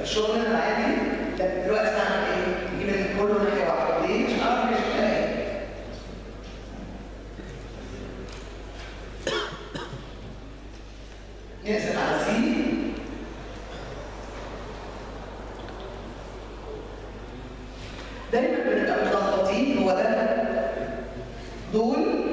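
A woman speaks calmly, explaining, nearby.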